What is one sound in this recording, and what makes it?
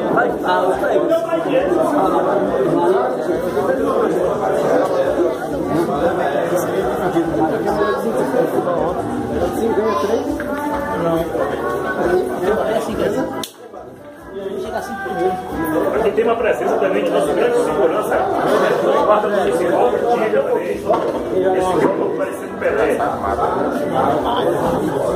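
Pool balls click together on a table.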